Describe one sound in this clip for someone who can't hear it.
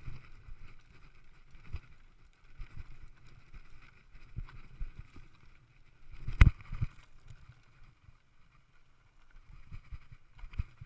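Mountain bike tyres crunch and roll over a rocky dirt trail.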